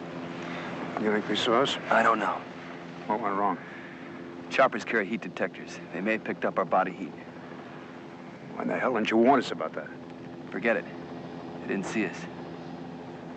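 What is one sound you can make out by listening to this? A man speaks in a hushed, urgent voice close by.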